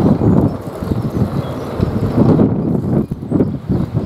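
A sliding door rumbles open.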